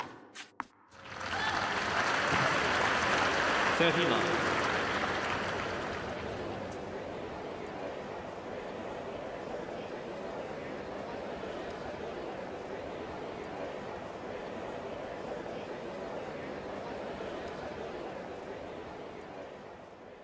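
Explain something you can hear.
A large crowd cheers and applauds loudly, then settles to a steady murmur.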